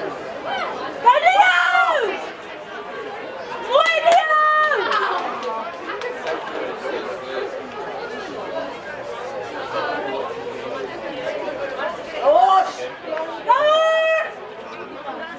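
Young men shout loudly across an open field.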